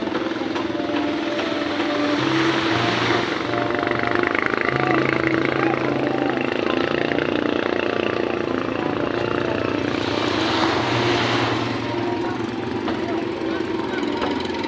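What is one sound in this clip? Several people talk nearby outdoors.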